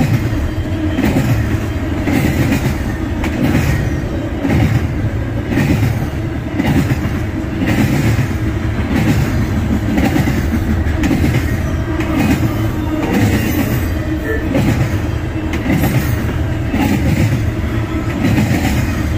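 Train wheels clack rhythmically over rail joints.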